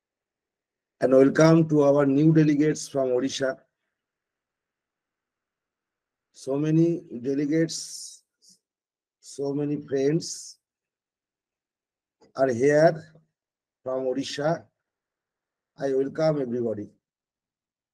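An older man speaks calmly in short phrases, heard through an online call.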